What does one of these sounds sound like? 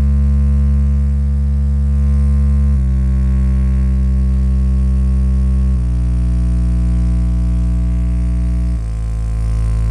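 A loudspeaker plays a loud, deep, buzzing test tone that steps down in pitch every few seconds.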